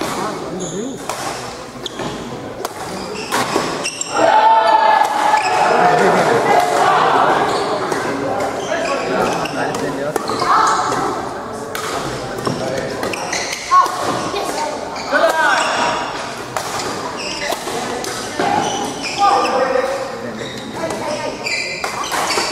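A crowd of spectators chatters in the background.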